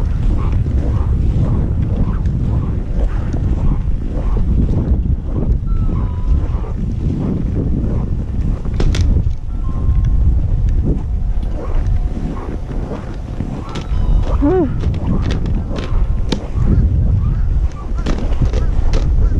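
Wind rumbles strongly across the microphone outdoors.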